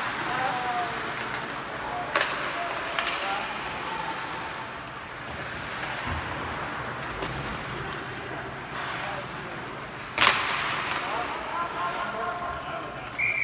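Voices of a crowd murmur and call out in a large echoing arena.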